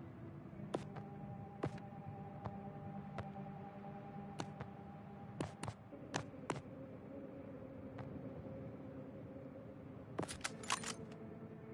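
Short electronic menu clicks sound as selections change.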